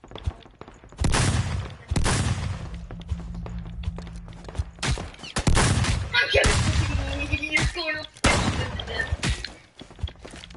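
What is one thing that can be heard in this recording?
Heavy blows thud and crash in a close fight.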